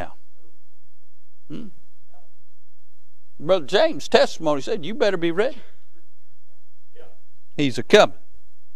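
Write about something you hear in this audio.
A man preaches over a microphone in bursts, with pauses between phrases.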